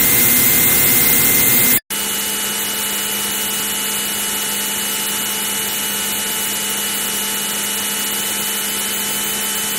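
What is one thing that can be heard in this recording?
A fighter jet's engine roars in a retro computer game's synthesized sound.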